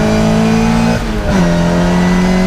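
A classic Mini race car's engine briefly drops in pitch during a gear change.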